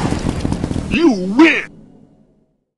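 A video game jingle plays with a wavering chime.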